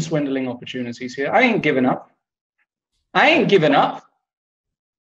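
A man talks animatedly over a microphone, heard as if on an online call.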